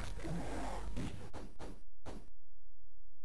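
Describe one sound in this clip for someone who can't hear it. A fireball bursts with a short whoosh and blast.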